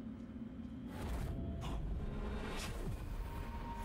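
A sword swings and strikes with a heavy whoosh.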